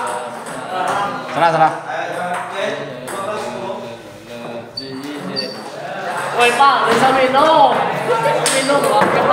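Several men talk and call out in an echoing room.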